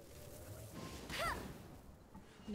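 Magical blasts burst with bright crackles.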